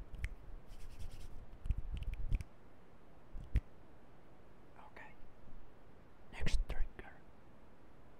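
A young woman speaks quietly into a nearby microphone.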